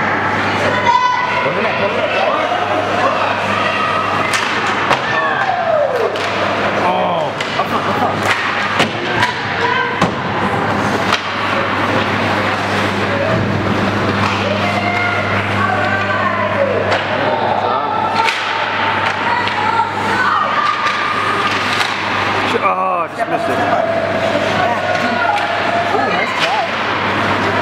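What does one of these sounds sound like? Hockey sticks clack against a puck and each other on ice.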